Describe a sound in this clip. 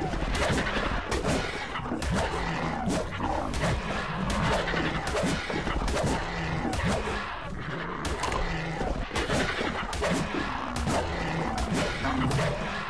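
A creature screeches and growls.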